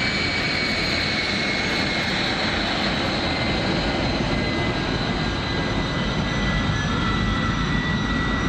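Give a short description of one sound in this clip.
A jet engine's deep roar grows louder as the aircraft turns away.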